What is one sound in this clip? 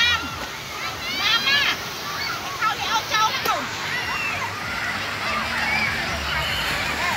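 Small waves wash and splash in shallow water.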